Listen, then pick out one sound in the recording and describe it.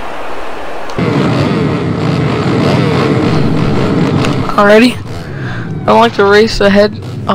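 Motorbike engines rumble and idle together.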